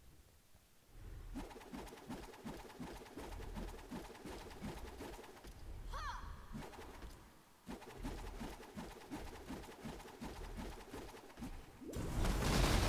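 Rapid magic blasts thump in a steady, quick rhythm.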